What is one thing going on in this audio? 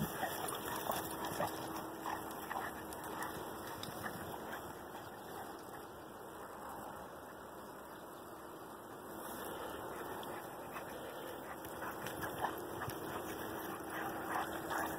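Dogs scuffle and run through rustling grass.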